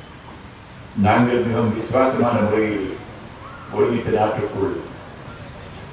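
An elderly man speaks slowly and deliberately into a close microphone.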